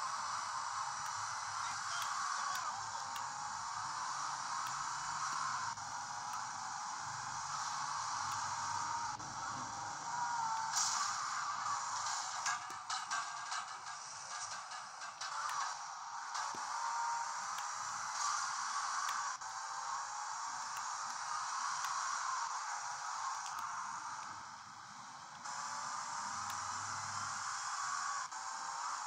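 A video game's car engine drones through a small, tinny speaker.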